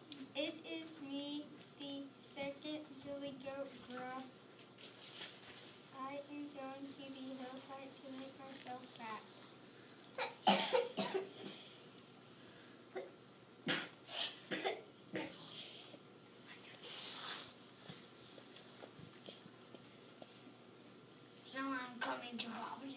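A young boy reads aloud close by.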